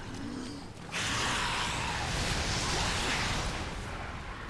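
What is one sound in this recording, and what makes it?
A fireball whooshes and blasts.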